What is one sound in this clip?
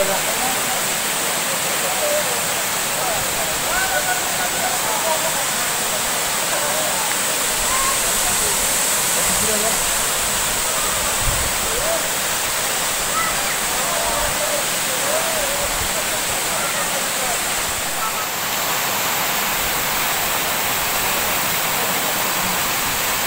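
A waterfall rushes and splashes steadily over rocks.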